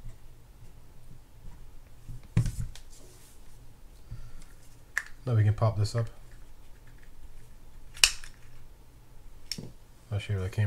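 Small plastic parts of a fishing reel click and clack as they are handled.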